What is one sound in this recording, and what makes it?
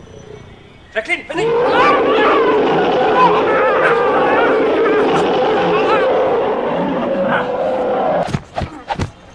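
A man screams in panic.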